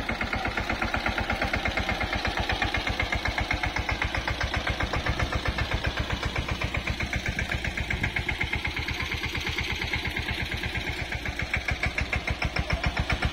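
A tractor's diesel engine chugs steadily close by.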